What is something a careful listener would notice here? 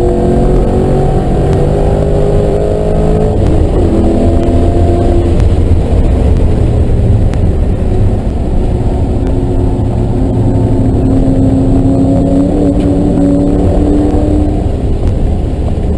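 Tyres rumble over the road surface.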